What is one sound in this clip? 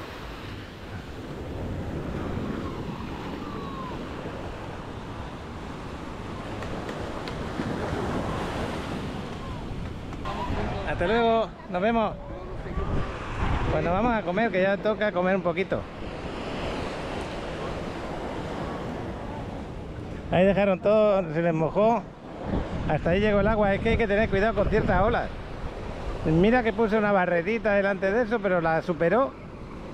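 Small waves wash softly onto a sandy shore.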